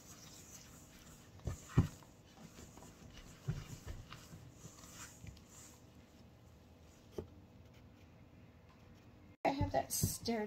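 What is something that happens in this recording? A wooden spoon stirs flour in a metal bowl with soft scraping.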